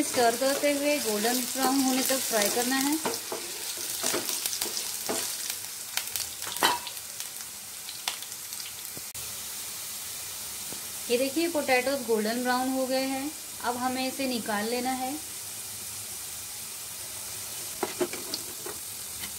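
Oil sizzles softly in a frying pan.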